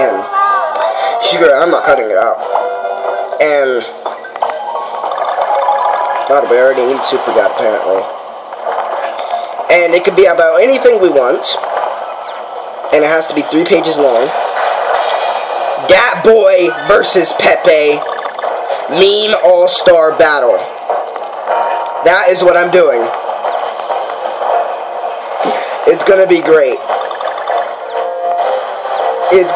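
Upbeat video game music plays from a small handheld console speaker.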